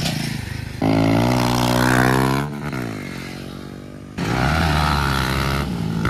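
Dirt bike engines rev loudly and roar past nearby, outdoors.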